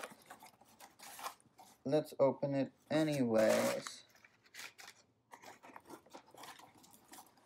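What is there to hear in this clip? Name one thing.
Cardboard rustles and crinkles as a box is opened.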